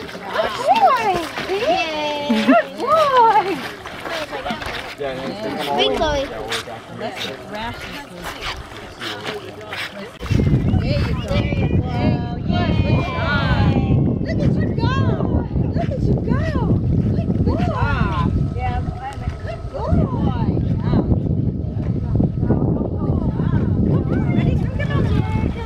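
Water sloshes and splashes gently.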